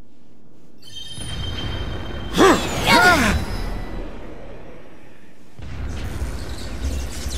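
A crackling magical energy surges with a rushing roar.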